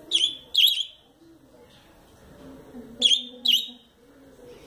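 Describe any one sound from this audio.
A budgerigar chirps in short, sharp bursts.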